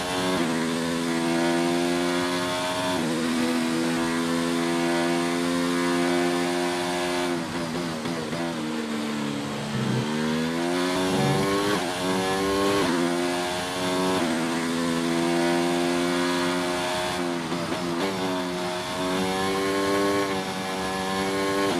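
A racing car engine screams at high revs, dropping in pitch for corners and rising again as it speeds up.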